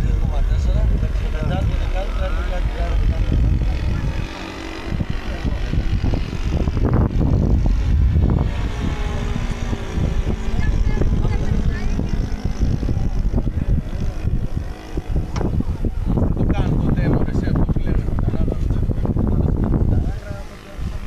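A small model plane engine buzzes high overhead.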